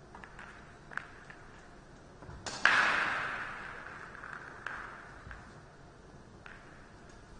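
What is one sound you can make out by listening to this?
A billiard ball rolls across the table and knocks against a cushion.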